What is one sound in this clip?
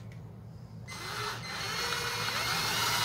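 An electric drill whirs into a gourd.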